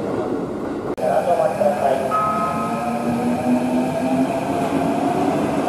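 A train approaches with a rising electric motor whine.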